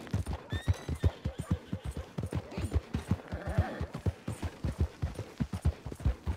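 A horse gallops with quick, heavy hoofbeats on a muddy track.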